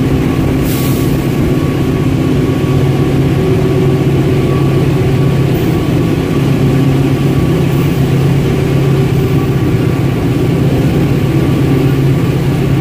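Wind rushes past a moving train.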